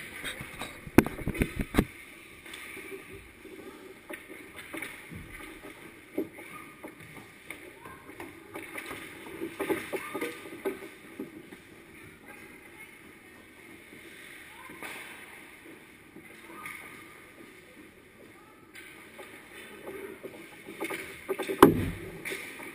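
Hockey sticks and a puck clack and knock against the ice and boards.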